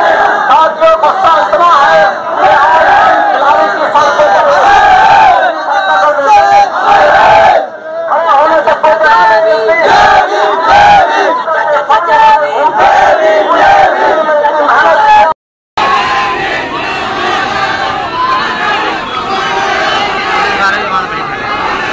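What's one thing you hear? A large crowd of young men chants and shouts loudly outdoors.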